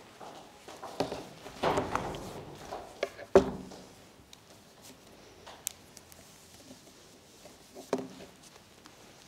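Hands rustle and handle objects close by.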